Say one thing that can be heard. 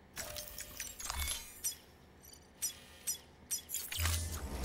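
Menu clicks and beeps sound in short bursts.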